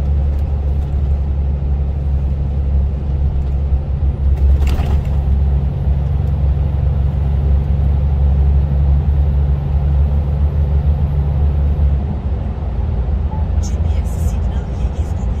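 A diesel truck engine drones low while cruising at speed.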